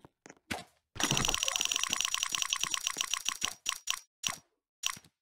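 A rapid ticking rattles as a crate's prizes spin past.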